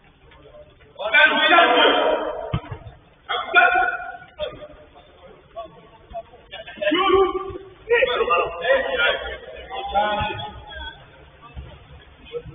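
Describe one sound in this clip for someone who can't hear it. Young men shout to each other from a distance.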